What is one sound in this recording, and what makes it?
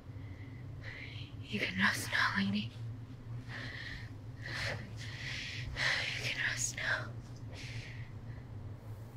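A young woman breathes heavily and whimpers close by.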